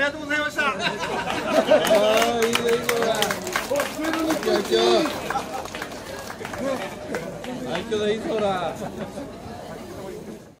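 Several men talk and call out loudly nearby.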